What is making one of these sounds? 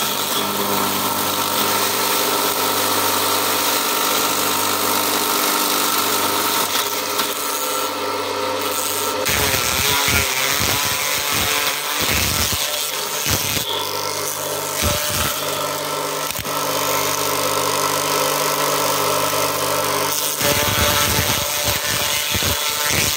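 A motor hums steadily and loudly.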